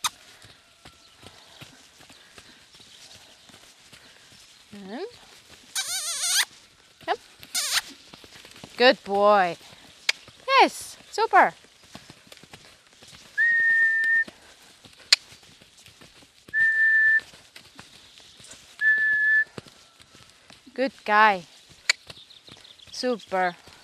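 Horse hooves thud softly on sand.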